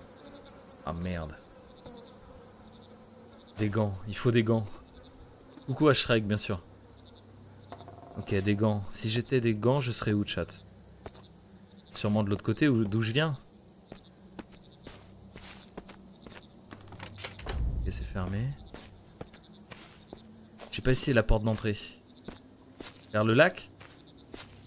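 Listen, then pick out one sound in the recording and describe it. A man talks into a close microphone in short, animated bursts.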